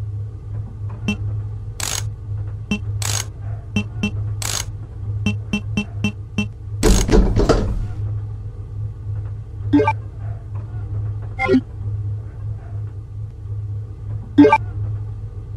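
Short electronic beeps sound as menu choices are made.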